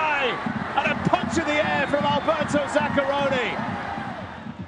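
A large crowd cheers and shouts loudly in a stadium.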